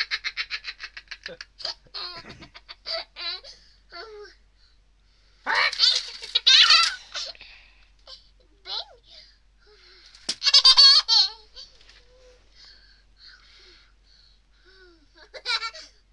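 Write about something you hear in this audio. A little girl laughs and squeals close by.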